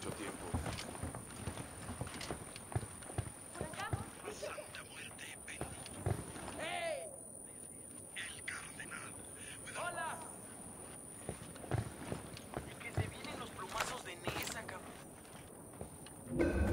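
Footsteps creak softly on wooden boards.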